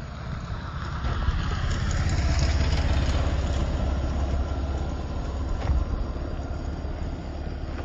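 A motorcycle engine hums as it passes nearby.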